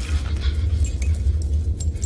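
A creature snarls and growls close by.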